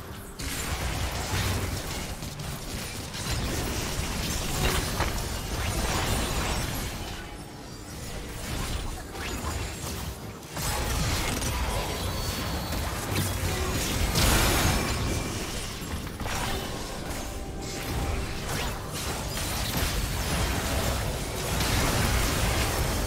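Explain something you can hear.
Magic blasts and sword clashes crackle and boom in a fast game battle.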